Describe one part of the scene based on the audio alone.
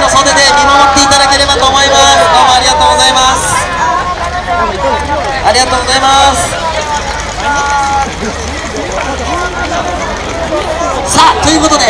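A large outdoor crowd of men and women chatters and calls out nearby.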